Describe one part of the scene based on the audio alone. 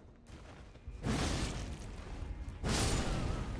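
Heavy blows crash and whoosh in a fight.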